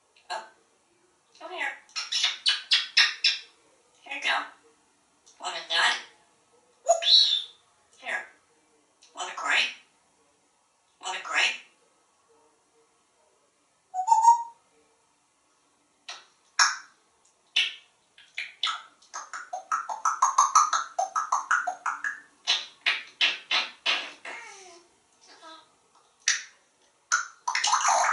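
A parrot talks in a mimicking voice, in short bursts.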